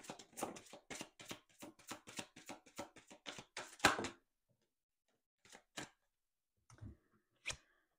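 Cards slap softly onto a table.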